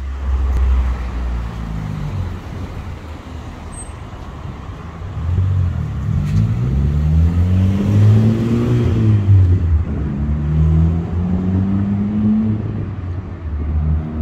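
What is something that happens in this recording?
Car engines hum and rev on a street nearby.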